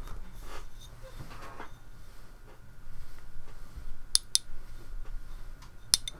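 Fabric rustles close by.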